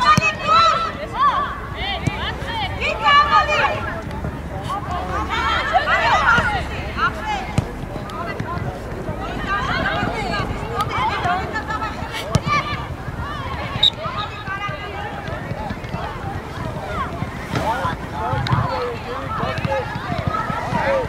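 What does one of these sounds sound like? Young women players shout and call to each other across an open field.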